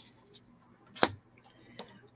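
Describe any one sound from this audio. A card taps softly onto a table.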